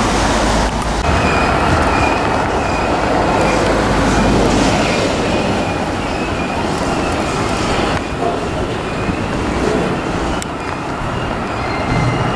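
Wagon wheels squeal on the rails.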